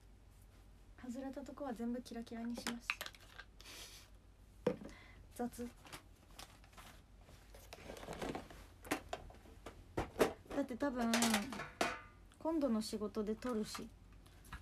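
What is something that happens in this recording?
A young woman speaks softly and playfully, close by.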